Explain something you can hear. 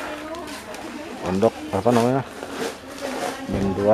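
A plastic sack rustles as it is set down on a floor.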